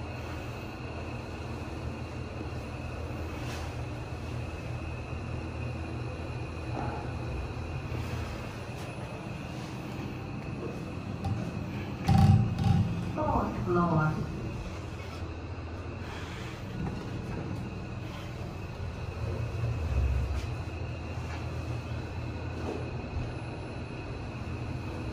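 A lift hums steadily as it moves.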